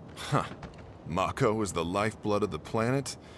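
A young man speaks scornfully, close by.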